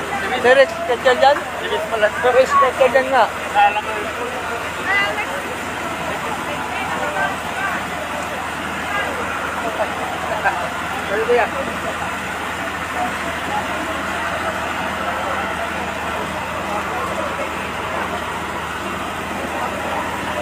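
A crowd of people talks and shouts close by, with excited voices.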